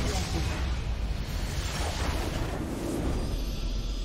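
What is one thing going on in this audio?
Magic blasts and impacts crash in a fast fight.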